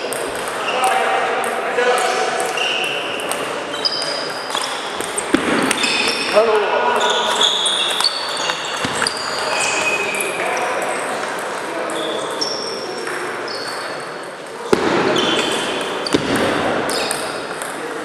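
A table tennis ball clicks sharply back and forth off paddles and tables.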